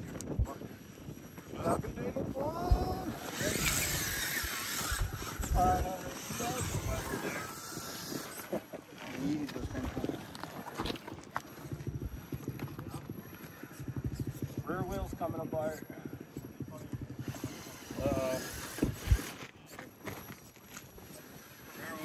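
A small electric motor whines as a toy truck crawls over rock.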